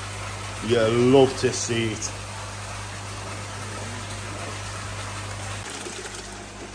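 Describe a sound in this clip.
Water ripples and trickles steadily in a tank.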